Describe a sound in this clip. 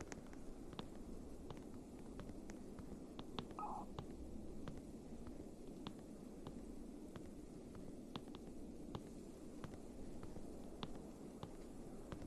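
Footsteps clank steadily on metal ladder rungs.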